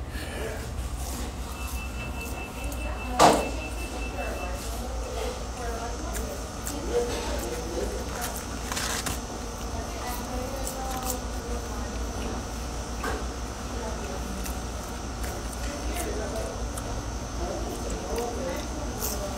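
A young man munches on fries.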